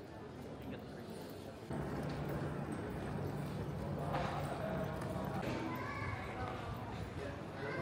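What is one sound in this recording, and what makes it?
People chatter quietly in a large, echoing hall.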